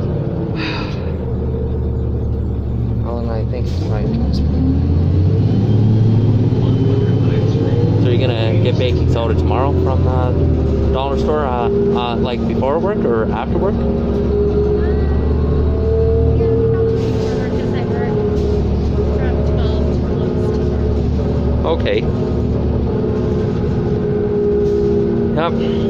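A bus engine rumbles low and steadily from inside the bus.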